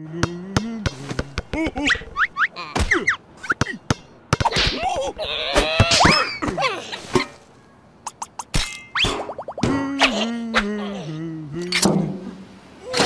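Quick comic knocks and pops sound.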